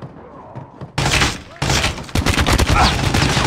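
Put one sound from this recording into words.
Rapid gunfire bursts loudly up close.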